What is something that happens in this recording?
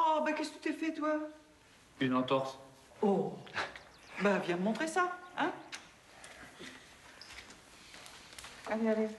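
Several adults talk nearby in short exchanges.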